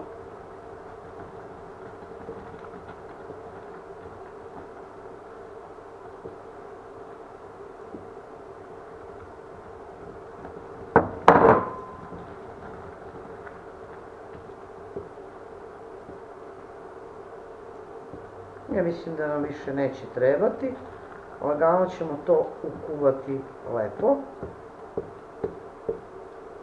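A wooden spatula stirs and scrapes thick porridge in a metal pot.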